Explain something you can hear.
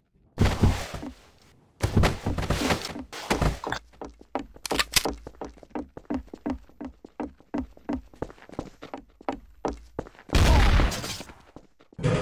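Gunshots ring out in loud bursts.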